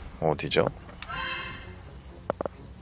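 A video game menu plays a soft, bright chime.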